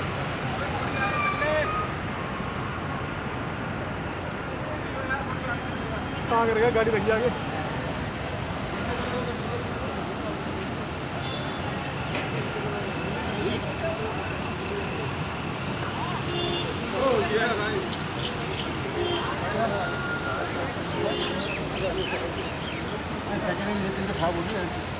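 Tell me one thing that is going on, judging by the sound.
Steady rain hisses outdoors.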